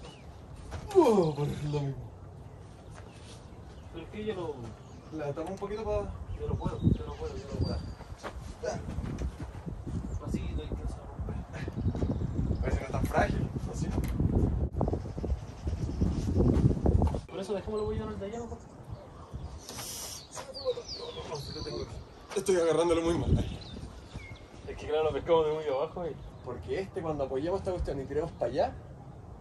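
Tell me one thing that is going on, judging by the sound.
Two men talk to each other outdoors at a short distance.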